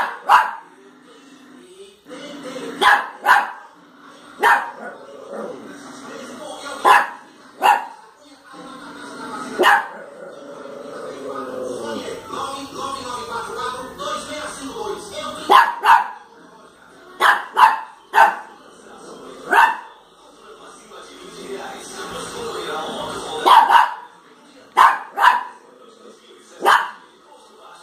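A small dog barks sharply, again and again, close by.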